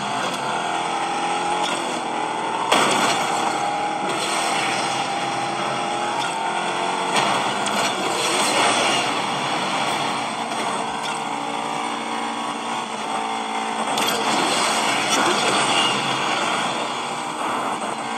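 A racing car engine roars steadily from a tablet's small speaker.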